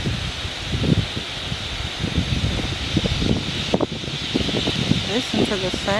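A large flock of metallic starlings chatters in flight.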